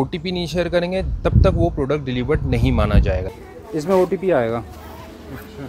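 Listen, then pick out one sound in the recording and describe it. A young man speaks close to the microphone, calmly and earnestly.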